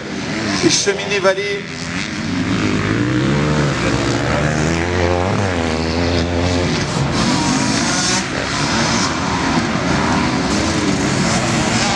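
Motocross motorbike engines roar and rev as riders race by outdoors.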